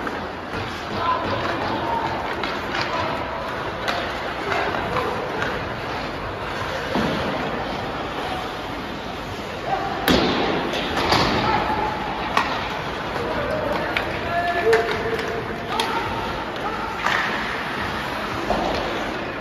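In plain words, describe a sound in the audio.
Hockey sticks and pucks clack sharply.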